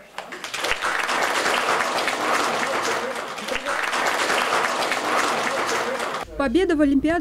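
A crowd murmurs and chatters in an echoing hall.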